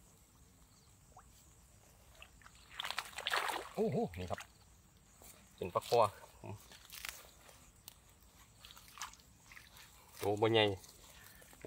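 Water splashes and sloshes as hands work in shallow water.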